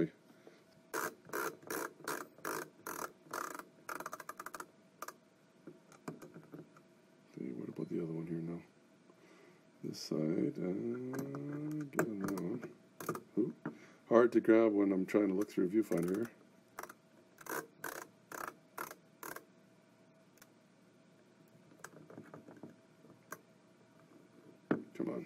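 A screwdriver clicks as it drives screws.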